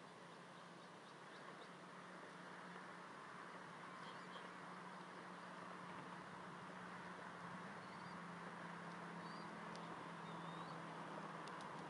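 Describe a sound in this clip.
Small birds chirp faintly at intervals.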